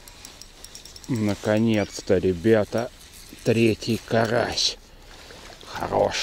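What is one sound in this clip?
A fishing reel clicks as its handle is wound.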